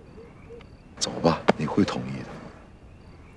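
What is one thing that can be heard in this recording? An older man speaks calmly and low, close by.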